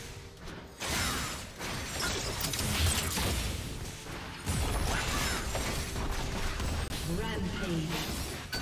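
Game spells crackle and whoosh in a fierce fight.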